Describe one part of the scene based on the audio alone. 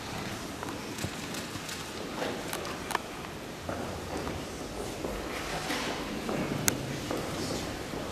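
Footsteps click and tap on a hard floor in a large echoing room.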